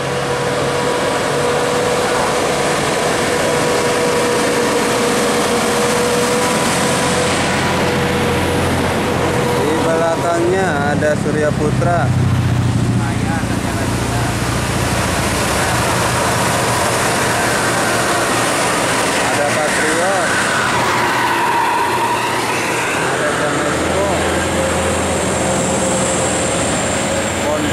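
Heavy bus engines rumble as buses drive past close by.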